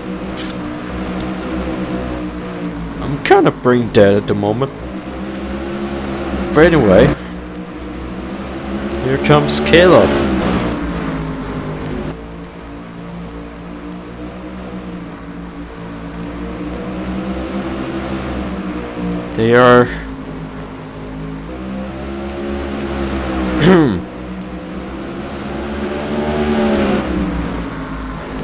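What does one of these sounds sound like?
Several race car engines roar steadily and loudly.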